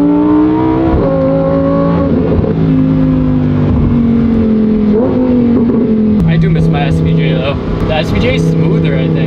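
A sports car engine roars loudly and shifts through gears.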